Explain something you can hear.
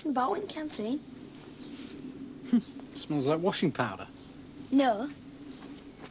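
A boy speaks close by.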